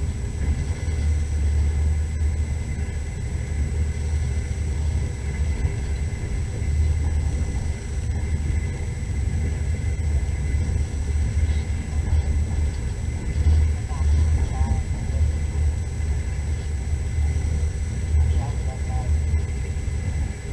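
A vehicle engine rumbles steadily as it drives over snow.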